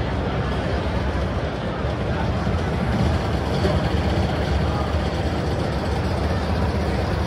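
A crowd murmurs in a large, noisy hall.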